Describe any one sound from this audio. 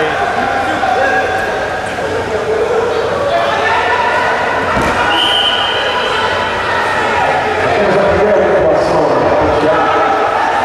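A large crowd shouts and cheers in an echoing hall.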